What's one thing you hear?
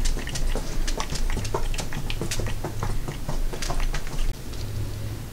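Small objects tap and click lightly on a hard surface.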